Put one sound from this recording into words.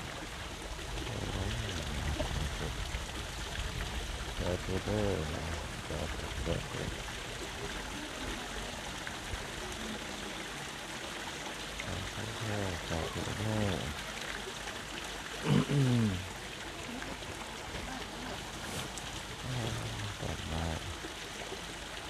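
A man speaks in short bursts nearby, outdoors.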